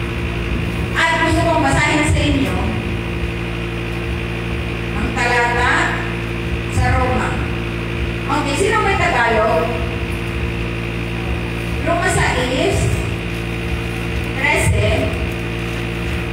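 A woman speaks in short phrases into a microphone, heard through a loudspeaker with a steady hum.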